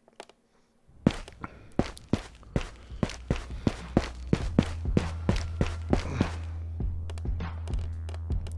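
Footsteps fall steadily on cobblestones.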